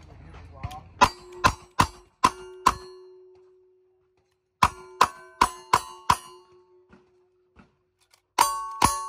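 Gunshots crack in quick succession outdoors.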